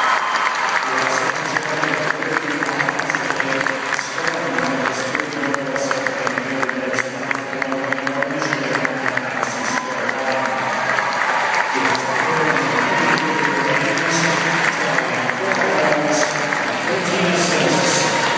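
A large crowd sings together in an echoing arena.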